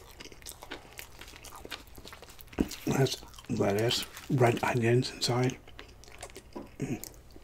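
A man chews food with wet, crunchy mouth sounds close to a microphone.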